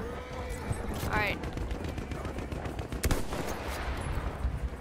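A rifle fires loud single shots close by.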